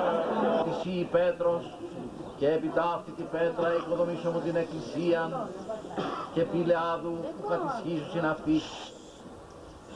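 An elderly man speaks calmly into a microphone, heard through a loudspeaker outdoors.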